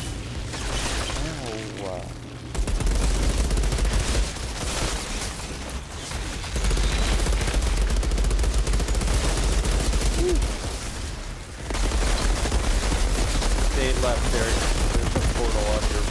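Rapid gunfire blasts over and over.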